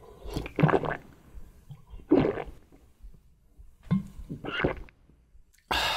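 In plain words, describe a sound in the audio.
A young man gulps down a drink.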